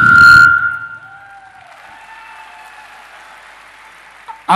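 A man talks energetically into a microphone over loudspeakers in a large echoing hall.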